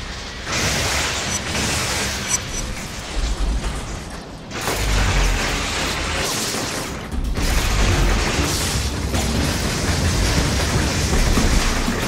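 Electric bolts crackle and buzz loudly.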